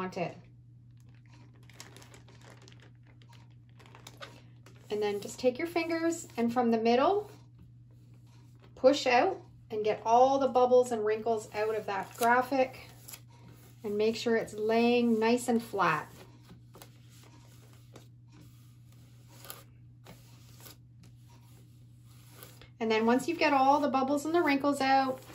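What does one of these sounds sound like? A plastic sheet crinkles and rustles under a hand.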